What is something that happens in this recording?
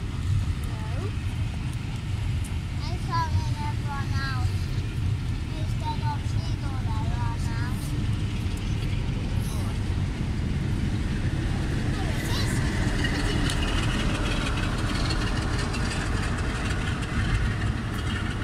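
Railway carriages clatter over the rails.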